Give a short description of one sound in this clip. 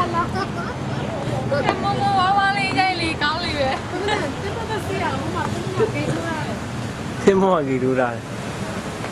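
A young woman talks excitedly close by.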